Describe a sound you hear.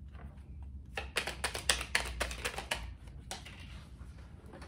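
Cards shuffle and riffle between hands.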